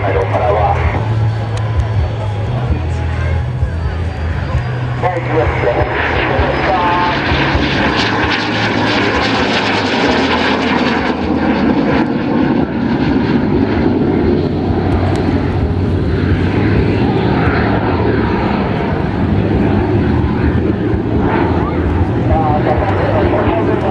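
A jet engine roars loudly overhead.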